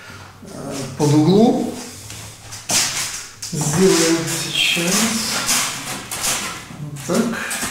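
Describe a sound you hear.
A middle-aged man talks with animation, close by.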